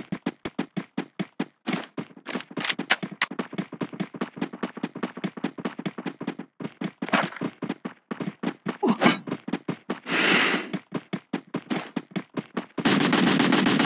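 Quick footsteps patter steadily as a runner sprints over the ground.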